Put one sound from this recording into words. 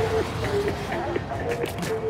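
Paint ink splatters in wet, squelching bursts.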